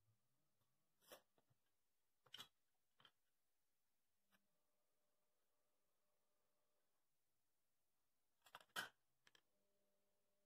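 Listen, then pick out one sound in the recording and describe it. Tools knock and clatter on a wooden board.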